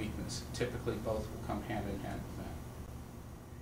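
A middle-aged man speaks calmly and explains, close by.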